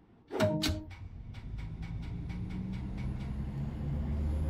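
Train wheels click rhythmically over rail joints, speeding up.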